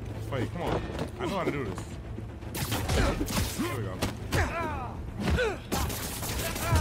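Punches and blows land in a game fight.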